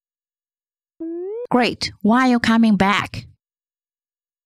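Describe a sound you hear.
A young woman asks a cheerful question, close to a microphone.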